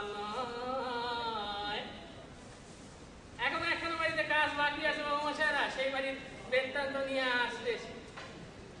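A man sings loudly with drawn-out notes.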